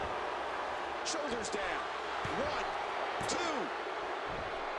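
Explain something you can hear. A crowd whoops and whistles loudly.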